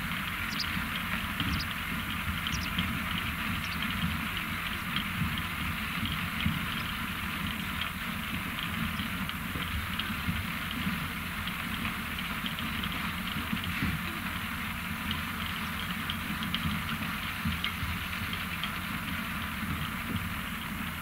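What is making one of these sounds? A farm loader engine rumbles steadily outdoors.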